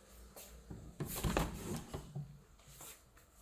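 A door latch clicks as a handle is pressed.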